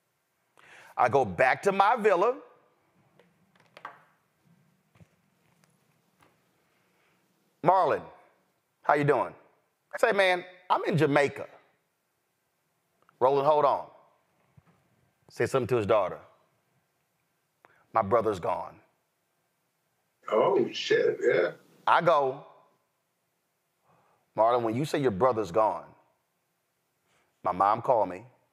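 A man speaks with animation over a microphone, in short bursts with pauses.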